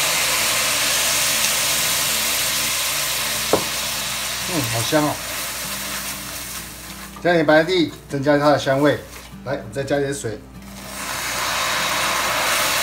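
Bubbling sugar sizzles and hisses loudly in a hot pan.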